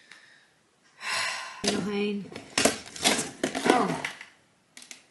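Cardboard boxes rustle and scrape as they are handled.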